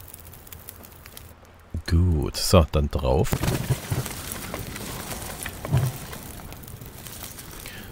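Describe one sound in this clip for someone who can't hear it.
A campfire crackles and hisses.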